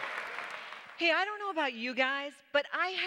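A woman speaks through a microphone to an audience in a large hall.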